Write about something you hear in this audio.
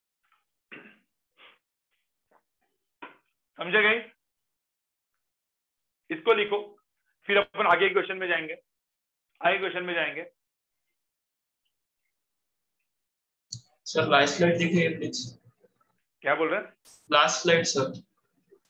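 A man explains calmly through a microphone, speaking in short bursts with pauses.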